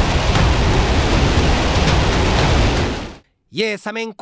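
A rocket engine roars loudly at launch.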